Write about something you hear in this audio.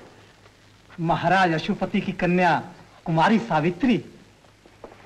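A man speaks in reply.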